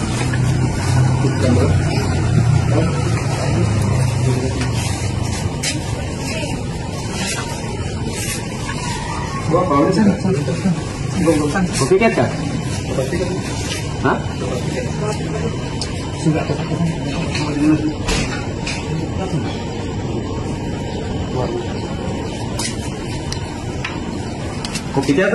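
Men talk nearby in low voices.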